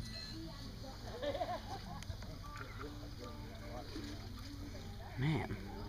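Water laps gently against a stone edge.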